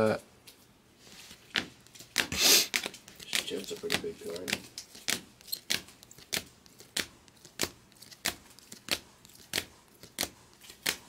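Trading cards flick and tap as they are shuffled through by hand.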